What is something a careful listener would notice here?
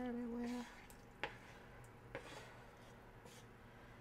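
A wooden spoon scrapes food off a plate into a pot.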